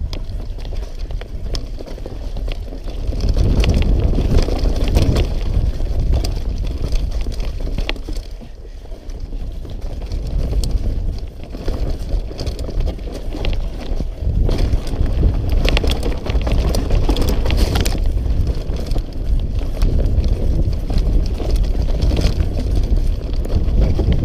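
Wind rushes loudly past a close microphone.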